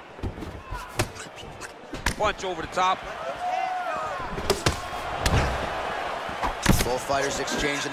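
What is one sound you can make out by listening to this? Blows thud sharply as fighters kick and punch.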